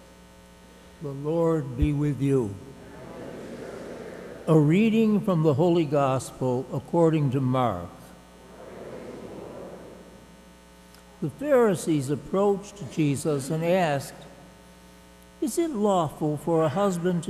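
An elderly man speaks calmly into a microphone, with pauses, heard over a loudspeaker in an echoing hall.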